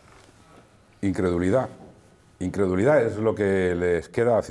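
A middle-aged man talks with animation into a microphone.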